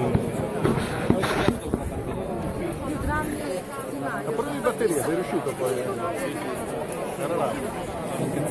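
A large crowd murmurs and chatters nearby outdoors.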